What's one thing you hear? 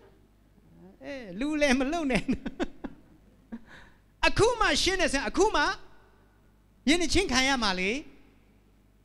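A man speaks with animation into a microphone, heard through loudspeakers in an echoing room.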